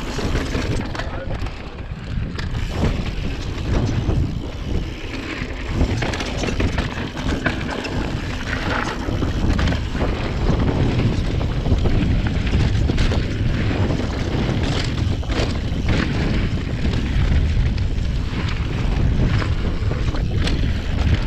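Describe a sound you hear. A bicycle's frame and chain rattle and clatter over bumps.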